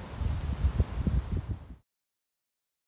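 Waves wash against a rocky shore.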